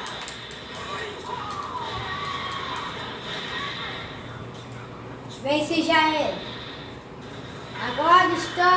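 Fighting game sound effects play from a television, with blasts and impacts.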